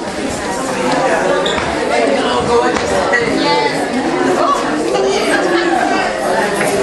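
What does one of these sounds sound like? A crowd of men and women chat and greet one another in a large echoing hall.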